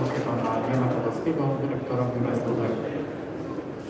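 A man speaks formally through a microphone in a large echoing hall.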